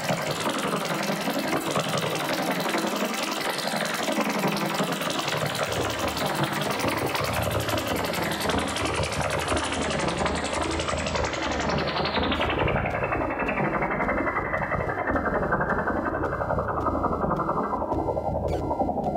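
Dense, noisy electronic music plays loudly and slowly turns duller and more muffled.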